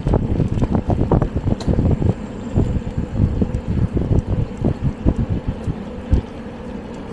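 Bicycle tyres hum on a paved road.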